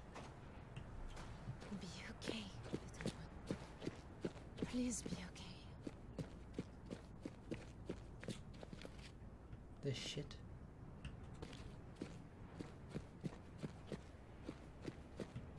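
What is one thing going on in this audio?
Footsteps crunch steadily on sandy rock.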